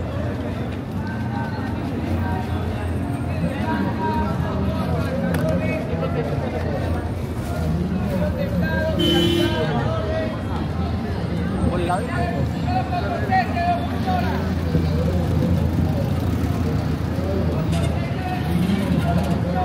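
A busy crowd chatters all around outdoors.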